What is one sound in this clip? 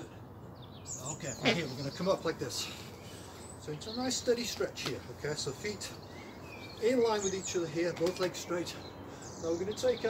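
A man talks calmly and clearly close by.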